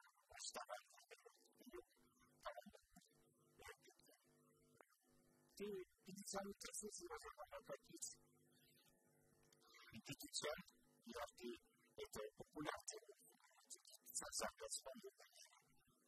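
An elderly man talks with animation, close to a microphone.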